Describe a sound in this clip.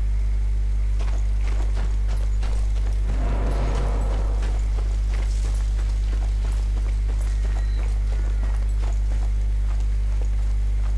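Footsteps crunch steadily over dirt and grass.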